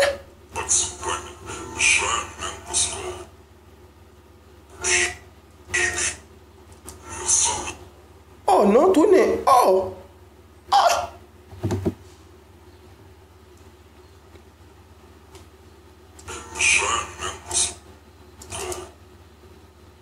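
A young man talks close to a microphone with animated surprise, in short bursts.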